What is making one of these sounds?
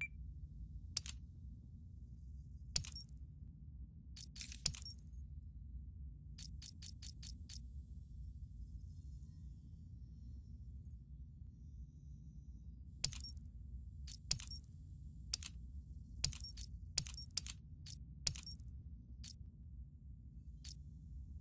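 Sharp menu clicks with brief swooshes sound now and then.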